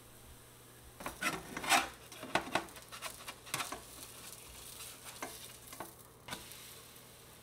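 A metal spatula scrapes and taps against a frying pan.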